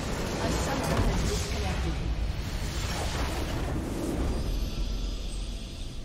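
Magical blasts boom and crackle loudly.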